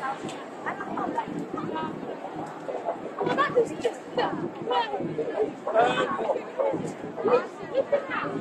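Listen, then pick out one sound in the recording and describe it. A crowd of people chatters and shouts nearby outdoors.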